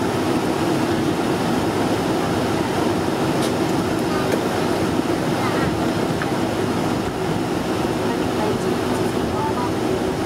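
Jet engines roar steadily inside an airliner cabin.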